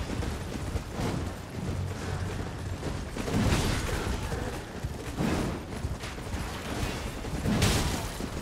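Metal weapons clash and strike.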